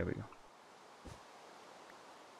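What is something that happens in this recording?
A pickaxe breaks a block with a short crunch.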